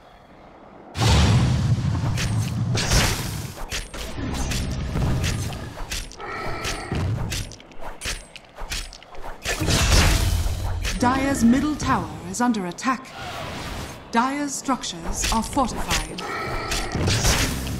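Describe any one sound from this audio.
Game spells and attacks crash and thud in quick bursts.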